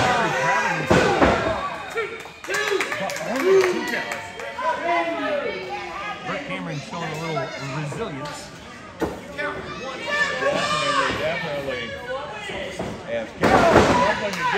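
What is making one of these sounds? Bodies thud onto a wrestling ring mat.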